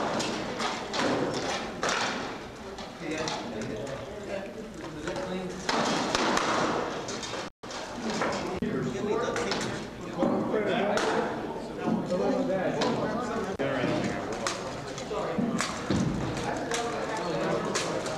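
Wooden weapons knock against shields.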